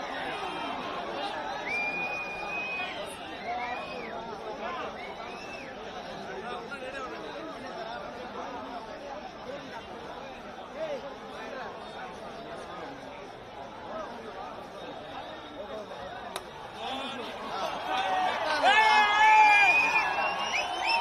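A large outdoor crowd cheers and shouts.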